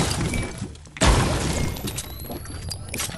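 A wooden door creaks and bangs shut.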